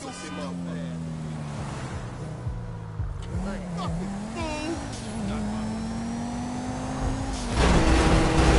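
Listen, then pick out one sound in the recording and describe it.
A sports coupe engine revs as the car drives down a street.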